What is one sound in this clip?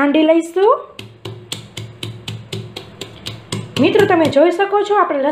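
A metal pestle pounds in a metal mortar with quick, ringing knocks.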